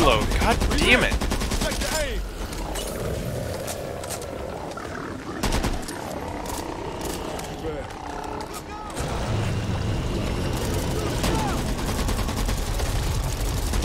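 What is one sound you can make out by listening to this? A rifle fires bursts of shots.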